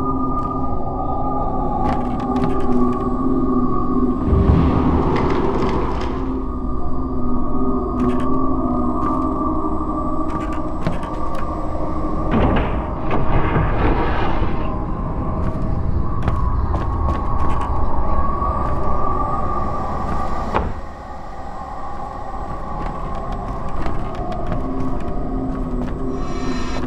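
Footsteps tap slowly on wooden floorboards.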